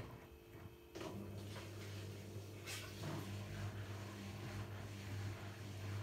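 A washing machine motor hums steadily as the drum turns.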